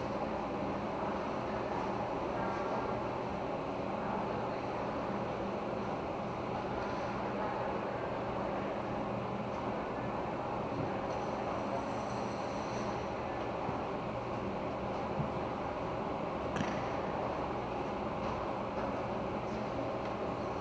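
Ice skates scrape and swish across the ice in a large echoing hall.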